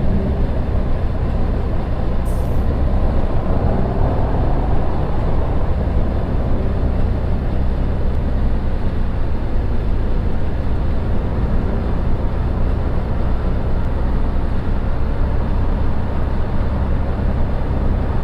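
A bus engine hums steadily and rises as the bus speeds up.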